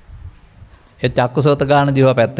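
An elderly man speaks calmly into a microphone, close by.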